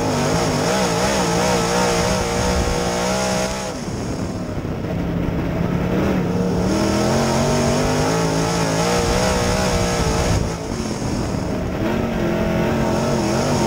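Tyres rumble and spray over a dirt track.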